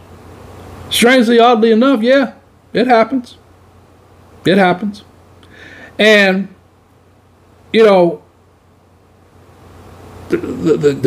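A man voices short, lively phrases close to a microphone.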